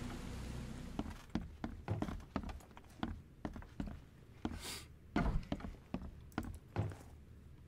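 Footsteps thud on wooden floorboards and stairs.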